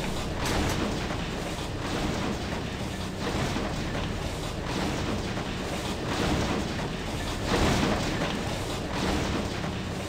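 Footsteps clank on metal stairs.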